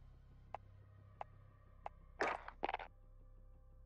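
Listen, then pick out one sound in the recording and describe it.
Menu clicks sound a few times.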